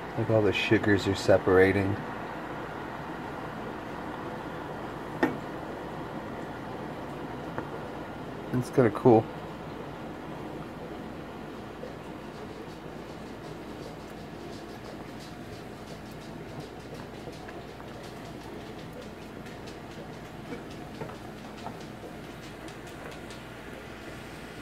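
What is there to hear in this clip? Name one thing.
Sauce bubbles and sizzles steadily in a pan.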